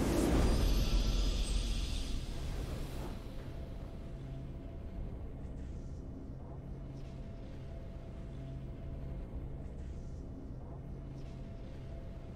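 A soft victory tune plays in a video game.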